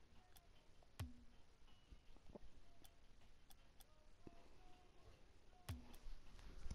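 Game menu clicks sound as options are selected.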